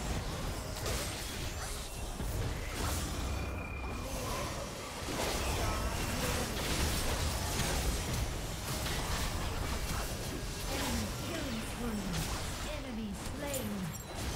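Game sword hits clang and thud.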